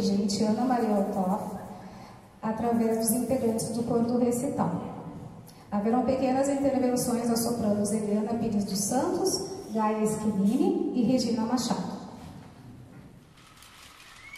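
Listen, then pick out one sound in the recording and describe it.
A woman speaks clearly into a microphone, heard through a loudspeaker.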